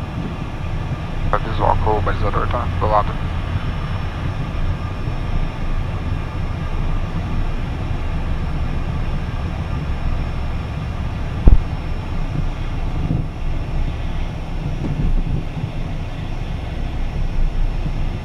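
A jet engine hums steadily.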